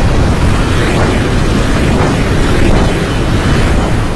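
A train rumbles and clatters along its tracks.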